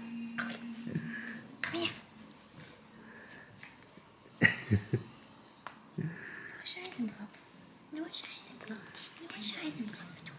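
A puppy growls playfully while tugging at a toy.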